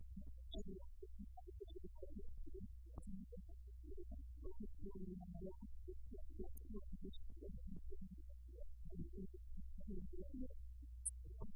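A woman speaks calmly into a microphone, in a small room.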